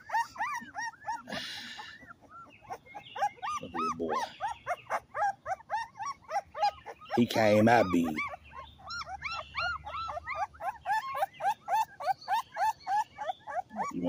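A puppy squeaks and whimpers in rapid high cries.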